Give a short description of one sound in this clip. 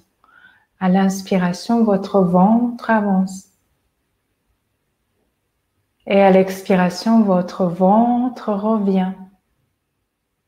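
A young woman speaks calmly and softly close by.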